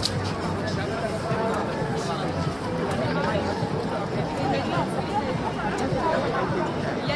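A crowd murmurs in a busy street outdoors.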